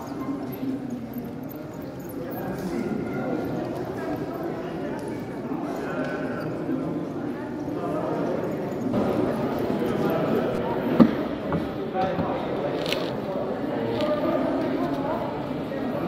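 Model trains rattle along their tracks.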